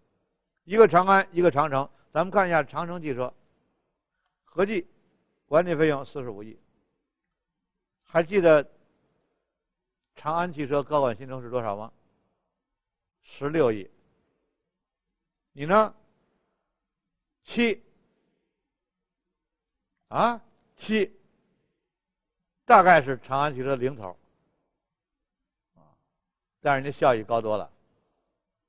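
A middle-aged man talks calmly into a microphone, in short phrases with pauses.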